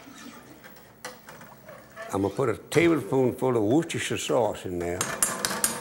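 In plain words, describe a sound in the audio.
A ladle stirs and scrapes in a pot of liquid.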